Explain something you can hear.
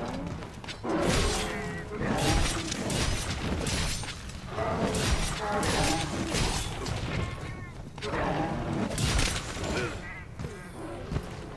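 A large beast roars and growls loudly.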